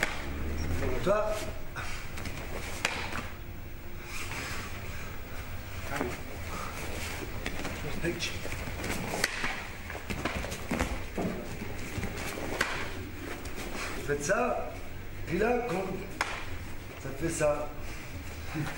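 A man shouts sharply during sparring, in an echoing hall.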